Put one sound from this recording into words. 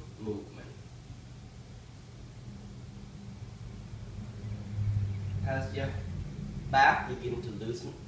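A middle-aged man speaks.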